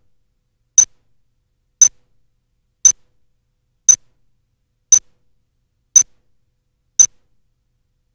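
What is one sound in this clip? A countdown beeps sharply once every second.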